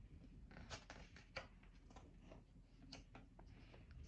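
A page of a book rustles as it is turned.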